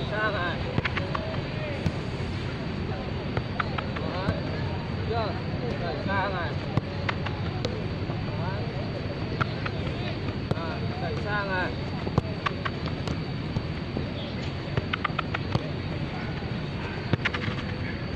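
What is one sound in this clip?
A football is kicked back and forth with dull thuds.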